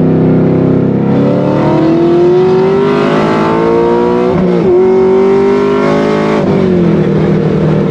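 A car engine revs higher and higher, then drops as gears change.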